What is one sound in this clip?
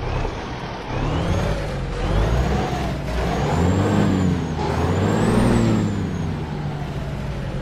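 A heavy truck engine revs up and down several times.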